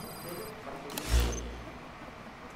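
A menu opens with a deep, short whoosh.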